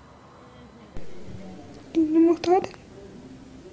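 A young woman answers weakly over a phone.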